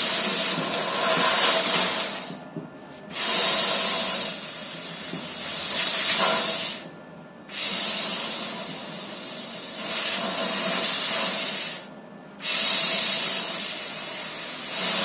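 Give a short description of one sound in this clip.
A laser cutting machine hisses and whirs, with brief pauses every few seconds.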